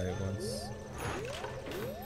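Magic spells whoosh and chime in a fight.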